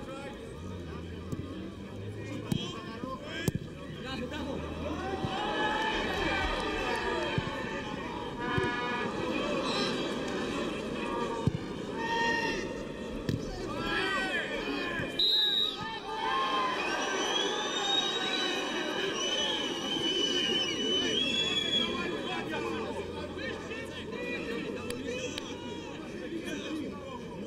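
A crowd of football fans cheers in a stadium.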